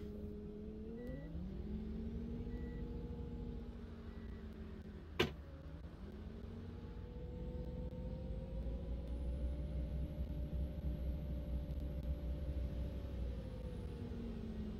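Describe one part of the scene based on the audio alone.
A bus engine revs up and down as the bus pulls away.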